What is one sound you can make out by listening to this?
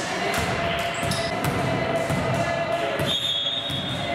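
A ball bounces on a wooden floor in an echoing hall.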